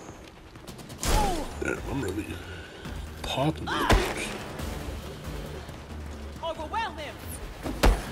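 A man grunts in pain.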